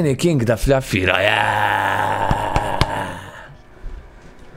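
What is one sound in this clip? A young man lets out a long, drawn-out cry.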